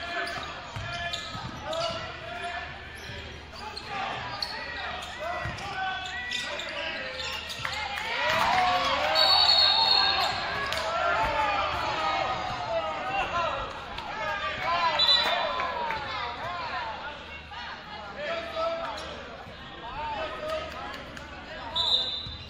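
A crowd cheers and shouts in an echoing gym.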